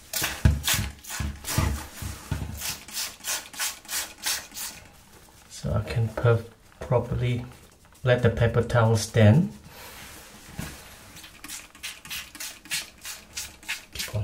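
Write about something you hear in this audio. A spray bottle sprays in quick, repeated squirts.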